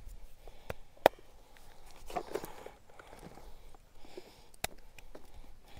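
A joint cracks with a sharp pop.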